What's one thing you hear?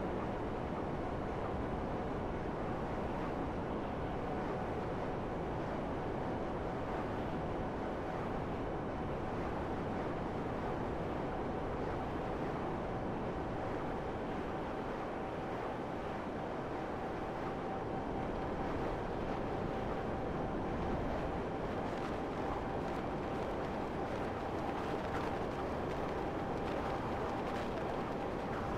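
A jet-powered flying motorbike roars as it flies.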